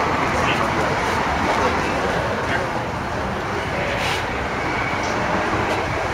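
An elderly man speaks.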